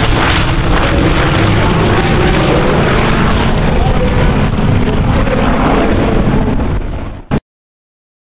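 Several propeller engines drone loudly overhead as a model plane flies past.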